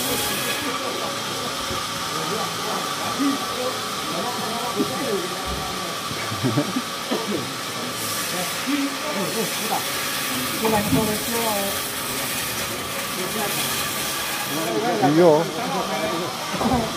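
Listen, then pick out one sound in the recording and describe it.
A sawmill machine hums steadily.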